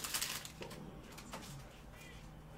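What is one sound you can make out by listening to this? Foil card pack wrappers crinkle as hands grab them.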